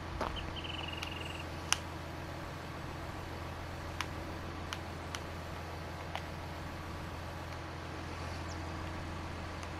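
A diesel engine idles with a low, steady hum.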